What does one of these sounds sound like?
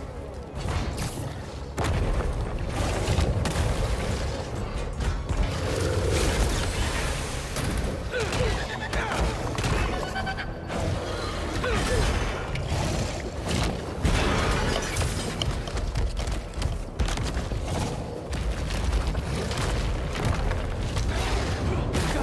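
Heavy blows and crashes of a fight land again and again.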